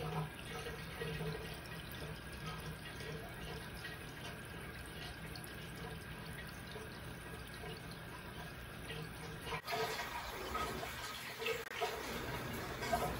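Air bubbles gurgle and fizz steadily in water.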